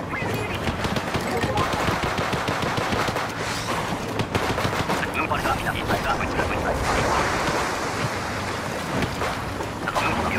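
Game blasters fire with wet, splattering bursts.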